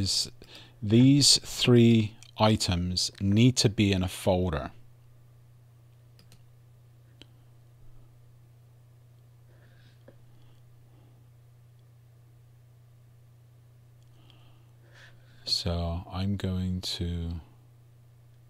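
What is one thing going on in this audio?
A man speaks calmly into a close microphone, in short bursts with long pauses.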